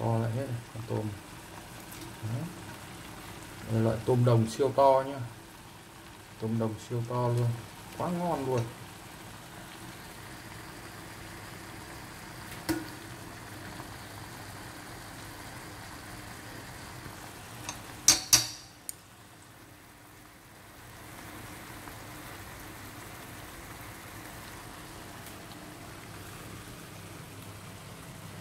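Shrimp sizzle in oil in a frying pan.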